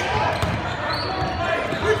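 A basketball bounces on a court floor.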